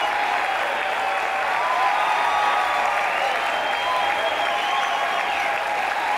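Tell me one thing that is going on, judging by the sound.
A large crowd cheers and shouts loudly in a big echoing hall.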